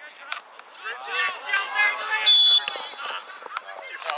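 Spectators cheer and yell loudly as play moves toward the goal.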